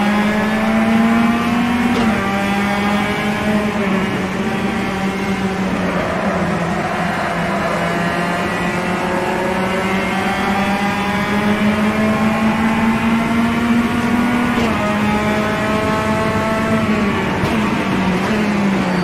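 A racing game's touring car engine revs up through the gears.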